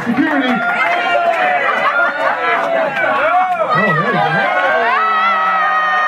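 A man laughs loudly close by.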